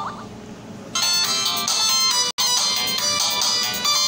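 Upbeat video game music plays loudly.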